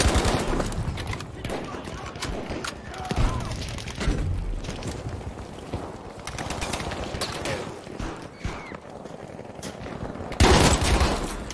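Gunfire crackles in the distance.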